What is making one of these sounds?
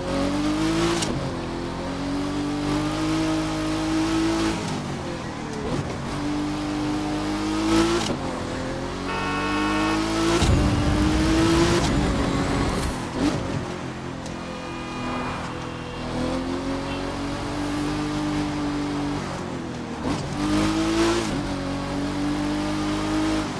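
A sports car engine revs high and drops in pitch with each gear shift.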